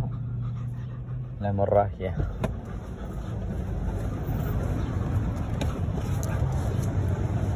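A car engine hums steadily with road rumble.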